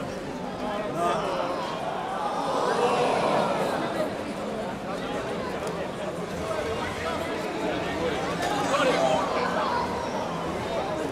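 A crowd of spectators cheers and exclaims loudly.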